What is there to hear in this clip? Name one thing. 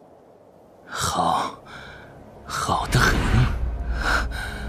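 A young man speaks tensely and angrily, close by.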